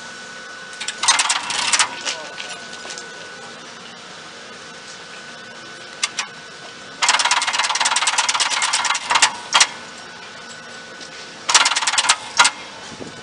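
The contacts of an electric train's camshaft controller clatter and snap in bursts of rapid clicking.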